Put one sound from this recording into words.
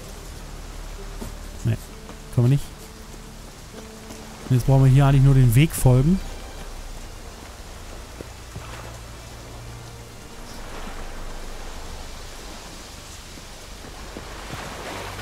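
Footsteps crunch on a path and thud on wooden boards.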